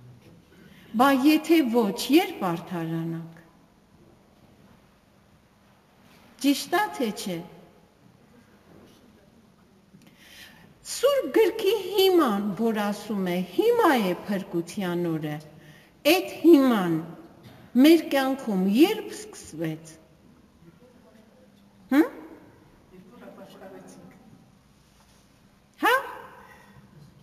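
An older woman speaks calmly into a microphone, with pauses.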